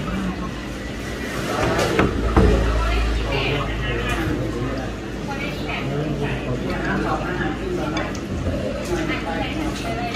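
Two young women slurp noodles close by.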